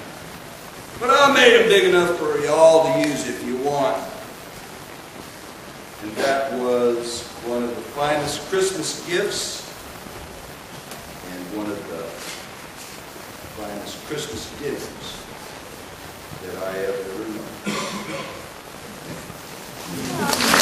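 A man reads aloud with expression.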